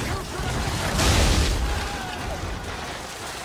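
Wooden planks splinter and burst as cannonballs hit a ship.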